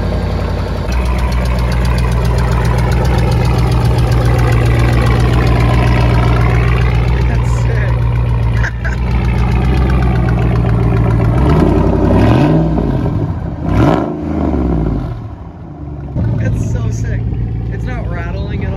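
A diesel truck engine idles with a steady low rumble.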